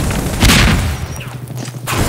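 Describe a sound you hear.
A fire burns and crackles close by.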